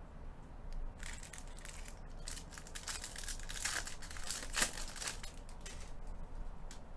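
Foil wrappers crinkle and tear as packs are opened.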